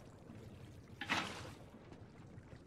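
Water splashes out of a bucket.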